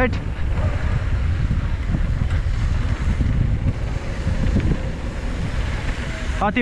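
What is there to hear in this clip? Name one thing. Bicycle tyres roll over a rough concrete path.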